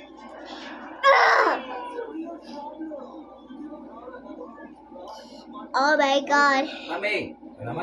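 A young girl laughs close by.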